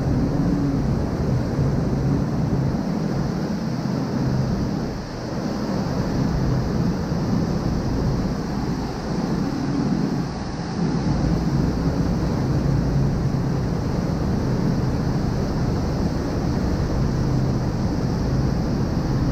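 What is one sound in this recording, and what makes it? Churning water rushes and splashes loudly beside a boat.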